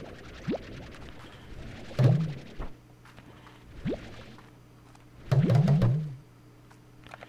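A cartoon vacuum gun sucks up objects with rising, bubbly pops.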